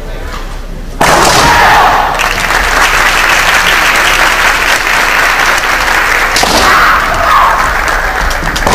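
A crowd applauds steadily in a large echoing hall.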